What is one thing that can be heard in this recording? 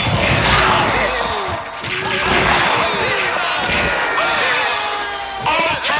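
Punches land with dull thuds during a fight.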